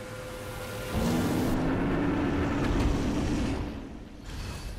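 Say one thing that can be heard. A huge creature lets out a loud, deep roar.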